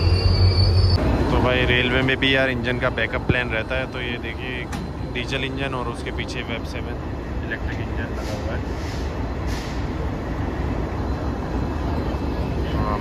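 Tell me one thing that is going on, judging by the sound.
A diesel locomotive engine drones close by as it passes.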